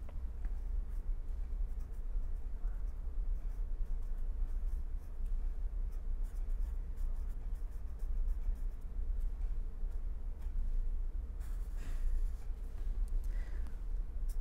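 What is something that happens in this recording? A marker pen squeaks faintly on paper.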